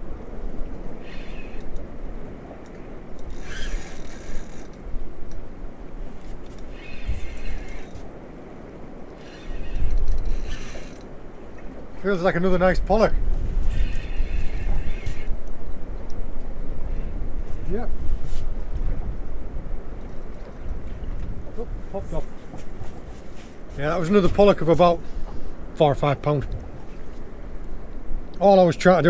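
Wind blows steadily outdoors on open water.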